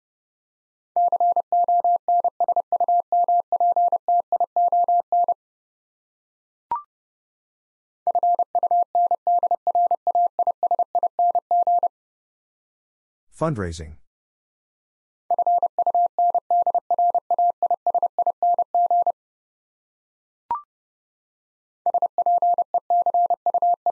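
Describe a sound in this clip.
A Morse code key taps out fast, steady beeps in bursts.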